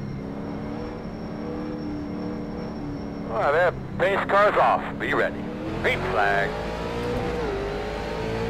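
A race car engine drones steadily, then revs higher.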